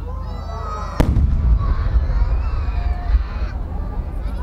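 A large firework shell bursts in the sky with a loud boom.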